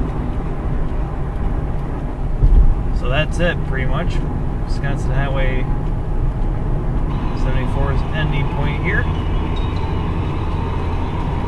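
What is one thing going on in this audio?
A car engine hums and tyres rumble steadily on the road from inside the car.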